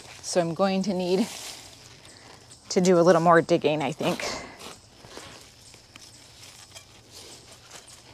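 A garden tool scrapes and digs into soil.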